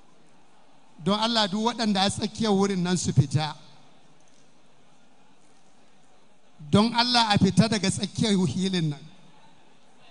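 A man chants loudly through a microphone and loudspeakers, in a large echoing hall.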